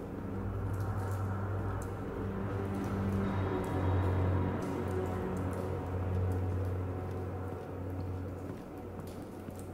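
Footsteps sound on a hard floor at a slow walk.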